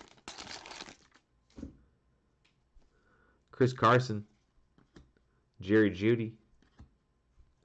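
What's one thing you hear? Trading cards slide and rustle softly between gloved fingers.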